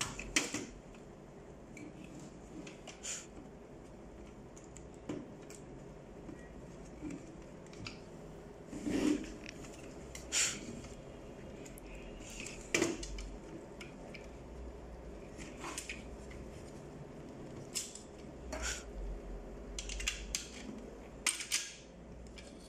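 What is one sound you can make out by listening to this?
Plastic parts click and clatter as hands handle a printer unit.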